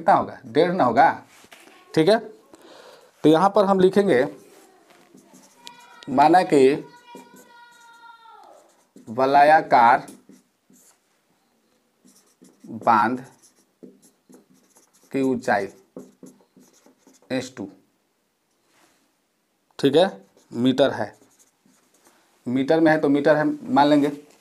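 A man explains calmly in short phrases, close to a microphone.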